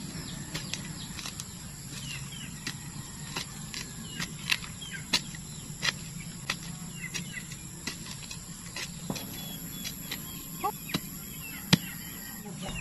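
A metal blade scrapes and chops into dry soil.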